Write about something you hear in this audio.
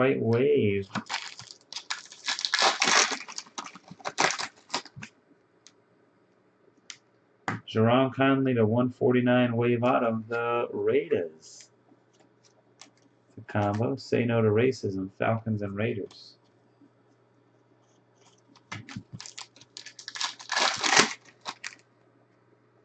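Foil card packs crinkle and tear as they are opened.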